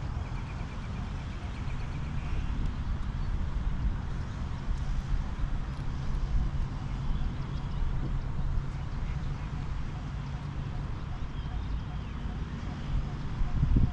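Wind blusters steadily against the microphone outdoors.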